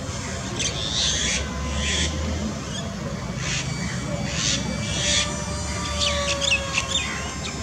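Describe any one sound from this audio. A jet engine roars overhead.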